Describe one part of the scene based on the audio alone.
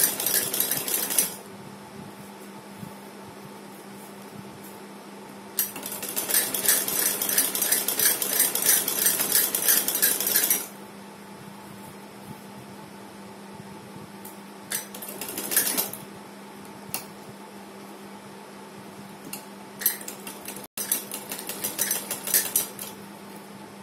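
A sewing machine runs in quick bursts of rapid clicking.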